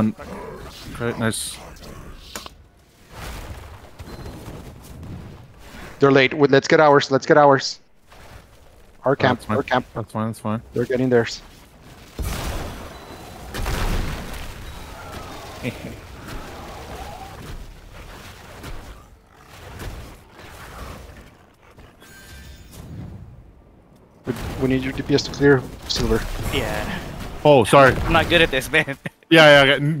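Fantasy battle sound effects clash and crackle.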